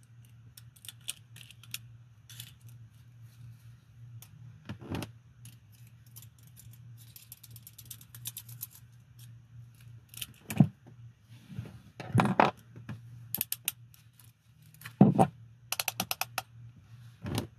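Handcuff ratchets click as they close.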